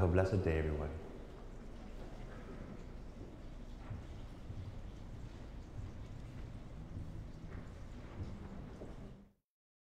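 Footsteps echo softly in a large, reverberant hall.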